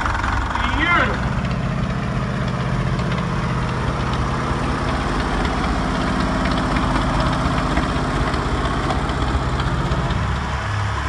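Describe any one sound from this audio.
A second vintage tractor engine putters steadily close by.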